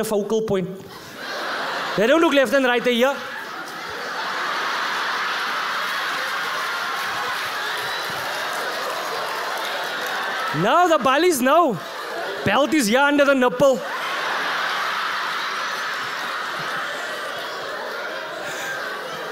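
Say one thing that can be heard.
A large audience laughs and applauds.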